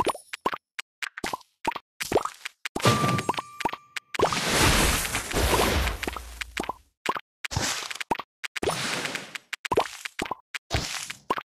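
Game candies pop with short bright chimes.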